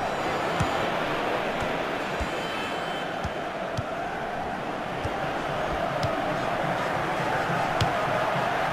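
A football is kicked with dull thuds, again and again.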